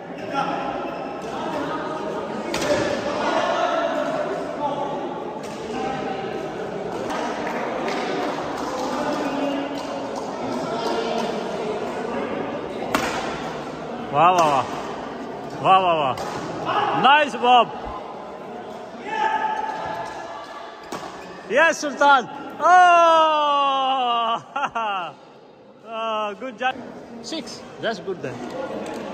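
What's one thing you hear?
Men talk and call out across an echoing hall.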